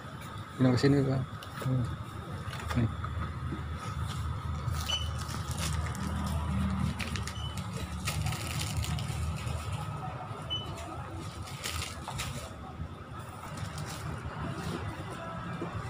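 Plastic snack packets rustle and tap onto a counter.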